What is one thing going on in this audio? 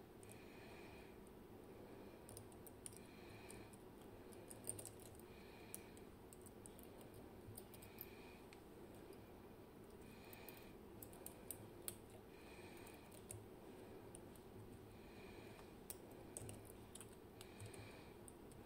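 Small metal parts click and scrape softly up close.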